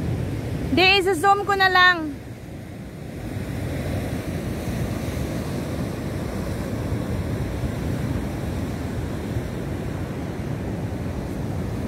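Waves wash and break against rocks nearby.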